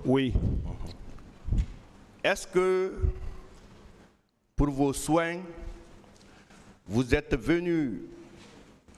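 A man speaks slowly and deliberately into a microphone.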